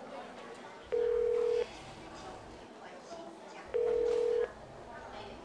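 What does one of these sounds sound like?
A ringing tone beeps through a telephone handset.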